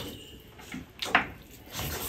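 A man chews and smacks his lips close up.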